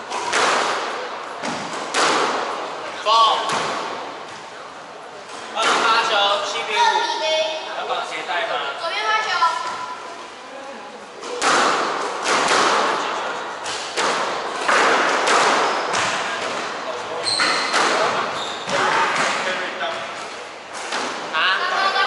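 Rackets strike a squash ball with sharp cracks.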